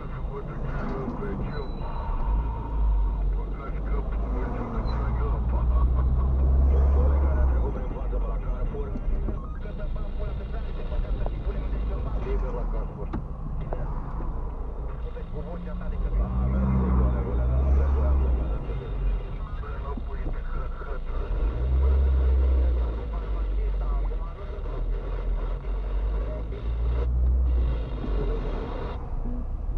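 Tyres rumble and hiss on the road.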